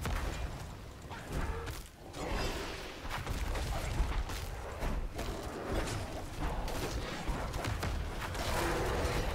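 Game combat sounds of blows and magic effects clash rapidly.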